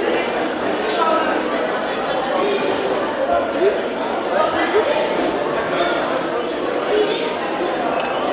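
A crowd of people murmurs and chatters in a large echoing room.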